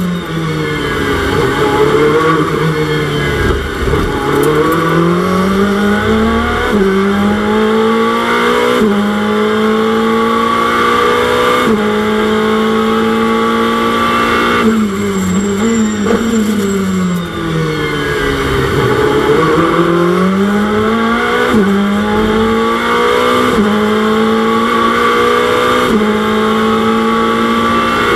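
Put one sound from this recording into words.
A racing car engine roars, revving up and dropping as the gears shift.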